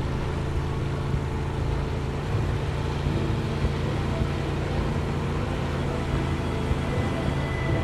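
Water rushes and splashes against a moving boat's hull.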